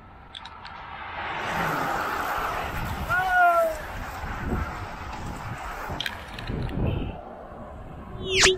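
A group of bicycles whirs past close by on the road.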